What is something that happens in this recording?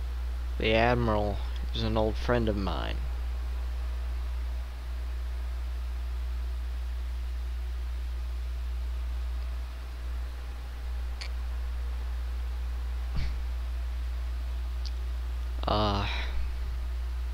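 A young man speaks calmly and close up into a headset microphone.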